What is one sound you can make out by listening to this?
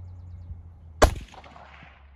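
A rifle shot cracks out across an open field.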